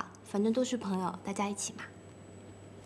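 A young woman speaks playfully, close by.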